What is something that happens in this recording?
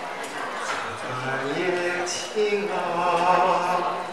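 A middle-aged man speaks slowly into a microphone, heard through a loudspeaker.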